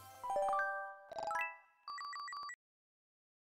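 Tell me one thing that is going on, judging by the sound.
A short cheerful game jingle plays.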